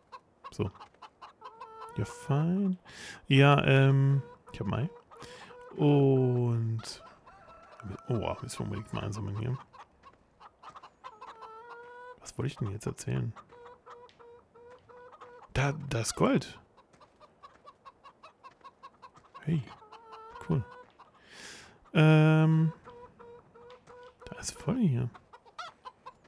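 Hens cluck and squawk close by.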